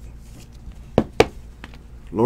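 Cards tap and click against each other.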